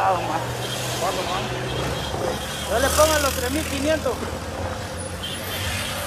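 A motorcycle engine revs as it passes close by.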